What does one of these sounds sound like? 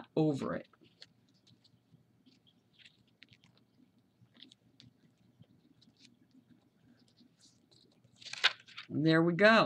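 Paper rustles and creases softly.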